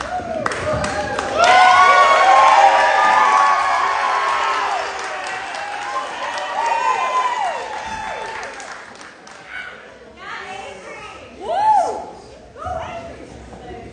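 Young women scream and cheer excitedly in an echoing hall.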